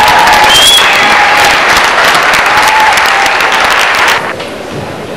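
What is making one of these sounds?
A crowd claps and cheers in a large echoing hall.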